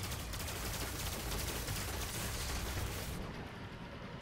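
A heavy gun fires rapid bursts with loud blasts.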